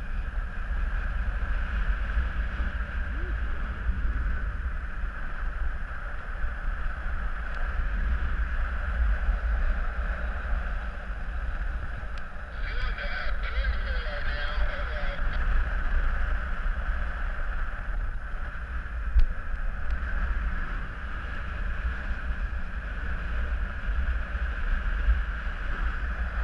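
Wind rushes and buffets steadily past a microphone in flight high outdoors.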